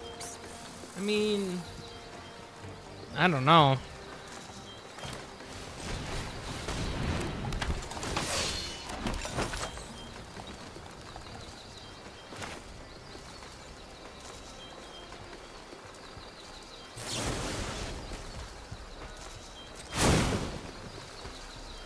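Electronic chimes and whooshes sound as cards are played.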